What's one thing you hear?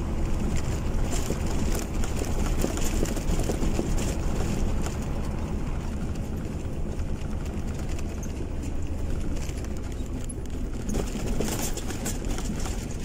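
Tyres roll on asphalt with a low rumble.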